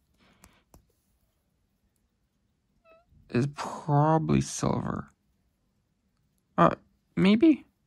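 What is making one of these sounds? Small metal jewellery pieces click softly as they are handled.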